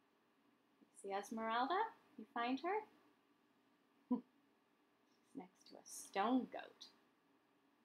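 A woman reads a story aloud in a lively voice, close by.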